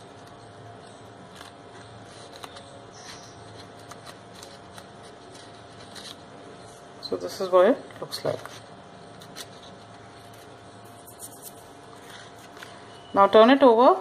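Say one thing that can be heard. Paper crinkles and rustles softly between fingers.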